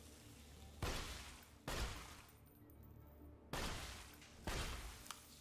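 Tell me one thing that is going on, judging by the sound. A gun fires loud, booming shots, one every second or so.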